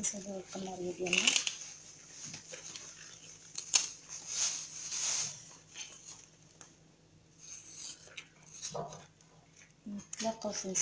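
Plant stalks rustle as they are handled.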